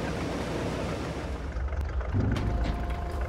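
A harvester engine rumbles steadily.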